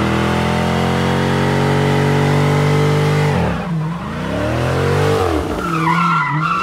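A car engine roars loudly at high revs, then drops and rises again.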